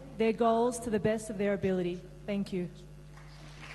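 An older man speaks slowly through a microphone in a large hall.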